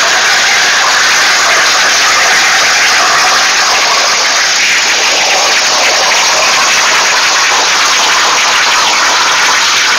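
A plasma torch cuts through steel plate with a loud, steady hiss.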